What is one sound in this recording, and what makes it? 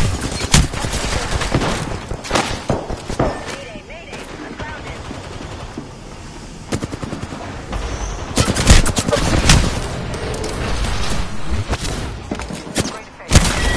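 Gunshots fire in rapid bursts nearby.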